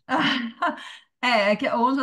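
A young woman laughs over an online call.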